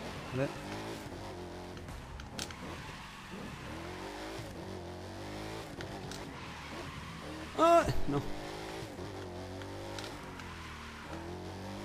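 Tyres screech while drifting.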